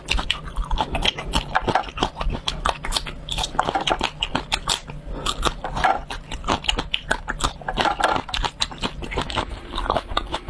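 A young woman chews food and smacks her lips wetly, close to a microphone.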